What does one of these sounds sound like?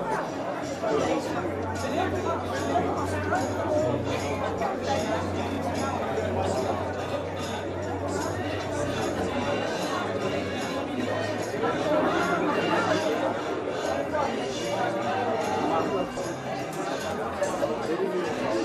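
A crowd of adults chatters.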